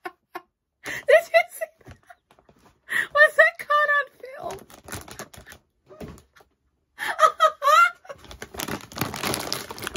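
A woman talks excitedly close to a microphone.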